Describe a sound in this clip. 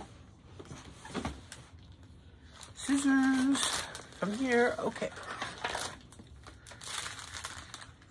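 A large sheet of paper rustles as it is unrolled.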